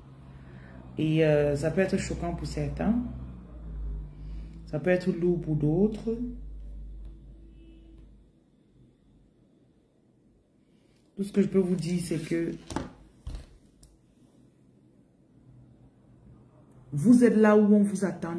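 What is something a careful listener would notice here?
A woman speaks calmly and close up, in short phrases with pauses.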